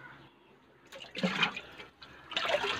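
Water splashes as a hand stirs it in a tub.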